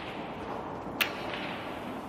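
Snooker balls knock together with a hard clack.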